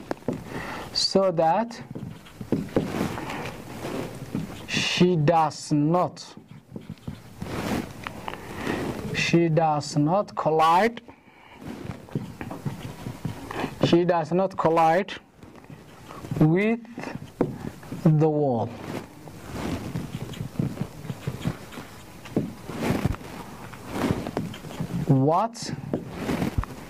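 A man speaks calmly, explaining as he goes.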